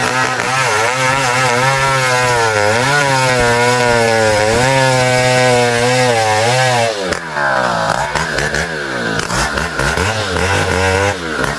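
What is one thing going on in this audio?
A chainsaw engine roars and revs as it cuts into wood.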